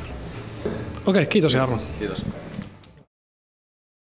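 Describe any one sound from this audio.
A young man speaks cheerfully into a microphone up close.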